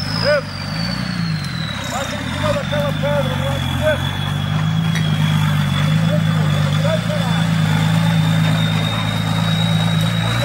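An off-road vehicle's engine rumbles and revs as it climbs over rough ground.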